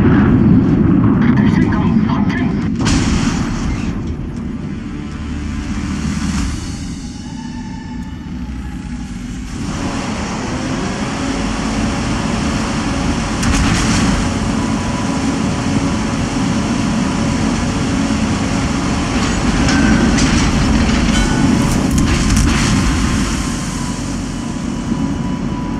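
Heavy guns boom and explosions rumble.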